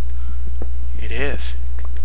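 A pickaxe chips at stone.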